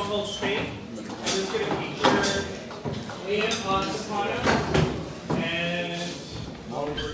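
A man speaks with animation in a large echoing hall.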